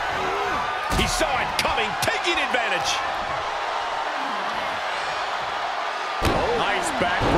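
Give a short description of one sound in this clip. A body slams heavily onto a wrestling mat with a deep thud.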